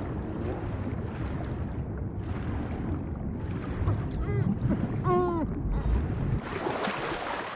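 Water burbles in a muffled way underwater.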